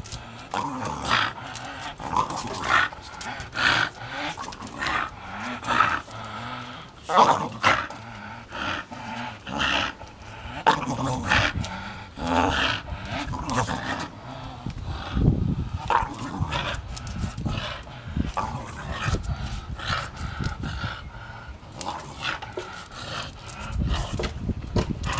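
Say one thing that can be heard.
A dog growls while tugging on a rope toy.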